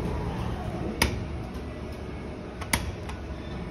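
A finger presses an elevator button with a click.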